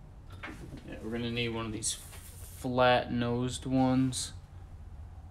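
A man talks calmly, close to a microphone.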